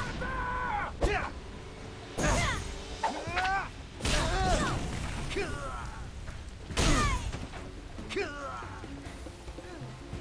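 Blades swish and strike with heavy hits in a fight.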